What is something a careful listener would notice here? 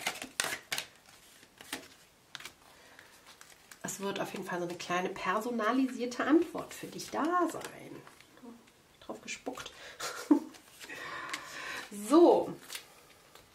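Playing cards are laid down softly on a table.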